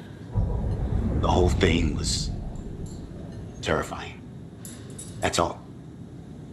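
A young man speaks calmly at close range.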